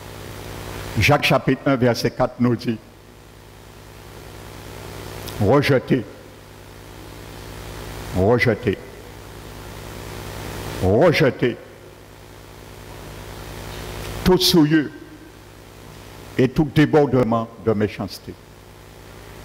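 An elderly man speaks slowly through a microphone, in short phrases with long pauses.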